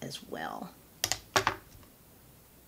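Small plastic items click and tap sharply.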